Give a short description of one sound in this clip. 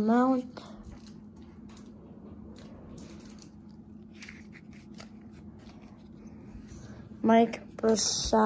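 Cards rustle and flick between fingers.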